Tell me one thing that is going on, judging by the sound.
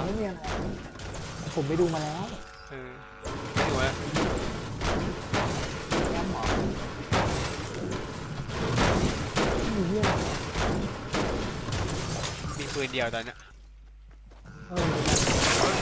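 A pickaxe strikes rock and metal in quick, repeated blows.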